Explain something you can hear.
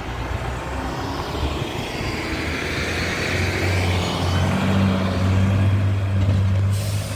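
A bus engine grows louder and hisses as the bus pulls away.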